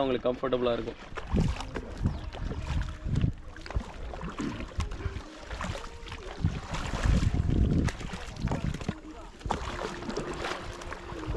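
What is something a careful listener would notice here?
A wooden paddle splashes and churns through water.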